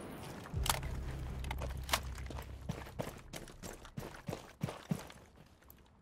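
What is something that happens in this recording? Footsteps thud quickly across the ground.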